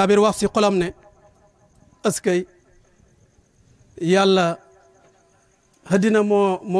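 An elderly man chants in a drawn-out, singing voice through a microphone, with pauses between phrases.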